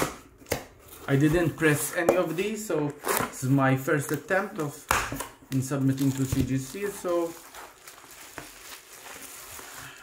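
A blade slices through packing tape.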